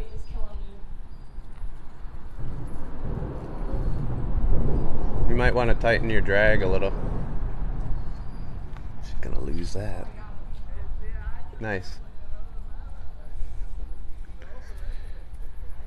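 Wind rumbles and buffets in gusts outdoors.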